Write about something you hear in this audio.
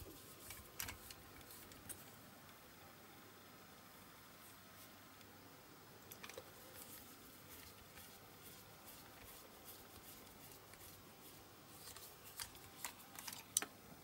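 A small hand drill bit scrapes softly into plastic.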